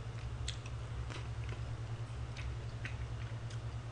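A young man chews food noisily.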